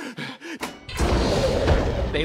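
A rocket engine roars loudly.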